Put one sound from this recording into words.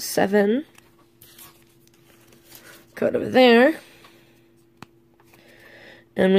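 A card rustles softly between fingers.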